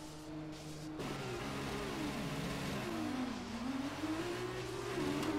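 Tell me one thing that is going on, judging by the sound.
Racing car engines rev up and roar, rising and falling in pitch.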